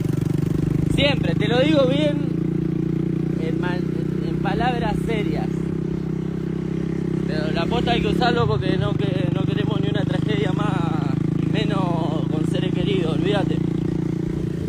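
A young man sings through a phone's microphone.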